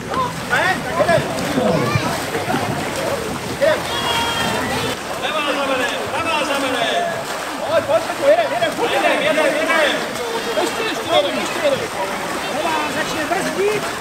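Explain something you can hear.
Paddles splash through water.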